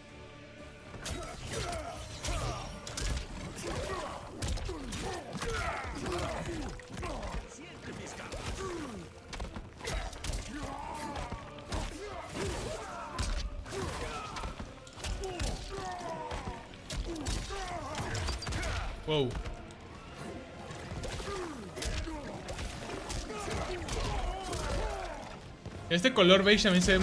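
Punches and kicks land with heavy thuds and cracks, fast and often.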